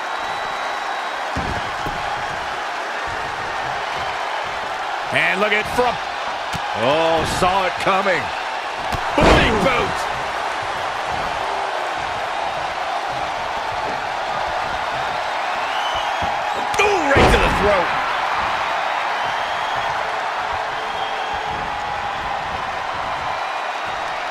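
A large crowd cheers and roars steadily throughout.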